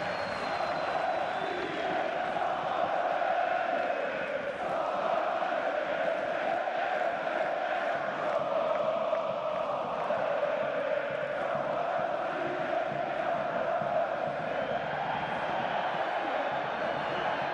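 A large stadium crowd chants and roars steadily.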